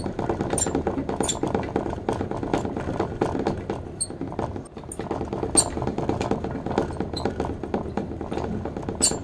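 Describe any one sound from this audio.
An exercise wheel rattles and clatters quickly and steadily as a small animal runs in it.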